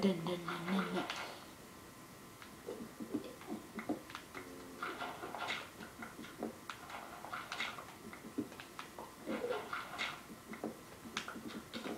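Digging sounds crunch repeatedly from a video game playing through a television speaker.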